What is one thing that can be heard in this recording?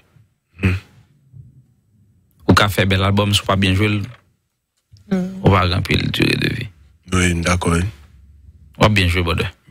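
A young man speaks calmly and closely into a microphone, in bursts with pauses.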